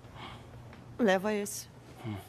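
A young woman speaks sharply up close.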